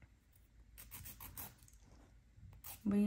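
A nail file rasps back and forth against a nail.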